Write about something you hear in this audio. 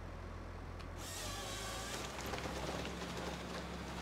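A harvester saw cuts through a tree trunk with a rough buzz.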